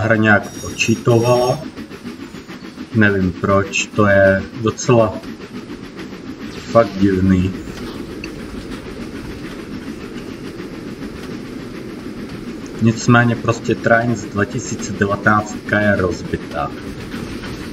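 A steam locomotive idles with a low rumble and hiss.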